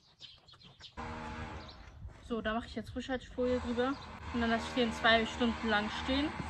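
A young woman talks calmly to the listener, close by.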